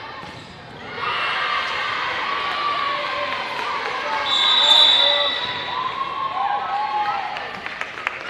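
Young women shout and cheer with excitement in an echoing hall.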